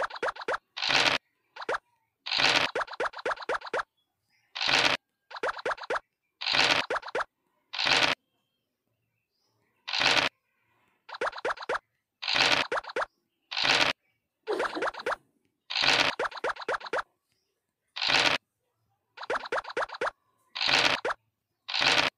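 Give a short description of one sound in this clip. A die rattles briefly as it rolls.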